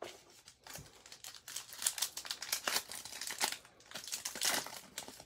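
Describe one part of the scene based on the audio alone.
Foil wrappers crinkle and rustle as cards are unwrapped close by.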